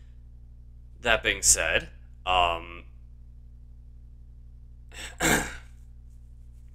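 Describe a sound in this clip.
A young man speaks casually into a close microphone, in short bursts.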